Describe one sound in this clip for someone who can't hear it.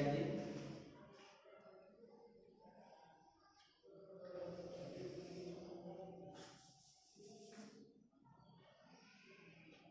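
Chalk scratches and taps on a blackboard.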